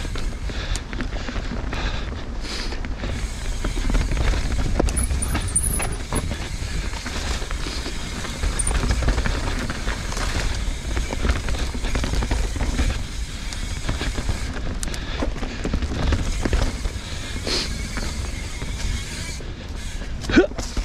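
A bike's frame and chain rattle over bumps.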